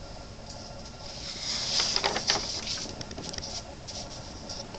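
Paper rustles and crinkles as a sheet is folded.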